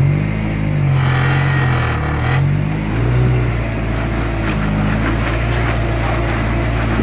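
Tyres grind and scrape over rocks.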